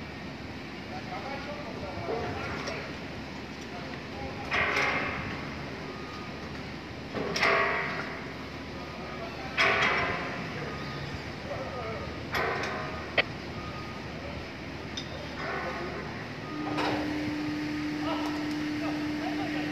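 A crane's motor hums steadily as it lowers a load.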